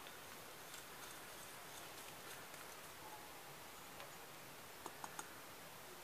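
Spices and nuts pour from a clay pot onto a stone slab.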